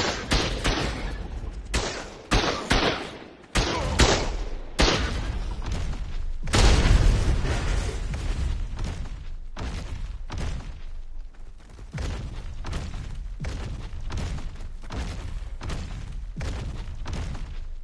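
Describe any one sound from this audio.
Heavy footsteps thud quickly over the ground.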